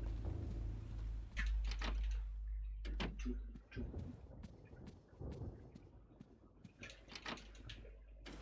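A young woman talks quietly into a close microphone.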